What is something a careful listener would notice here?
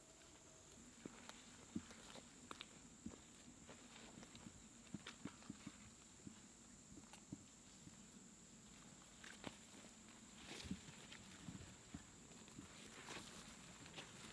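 Leaves rustle and twigs crackle as a person crawls through undergrowth.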